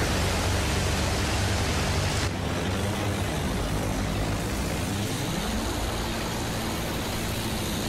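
A biplane engine drones steadily.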